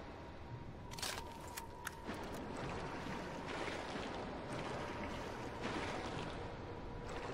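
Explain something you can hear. A knife stabs into flesh with wet, sharp thuds.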